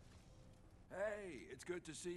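A man speaks in a friendly, welcoming voice close by.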